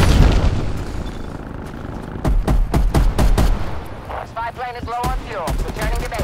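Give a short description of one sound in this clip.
Footsteps crunch quickly over dirt and gravel.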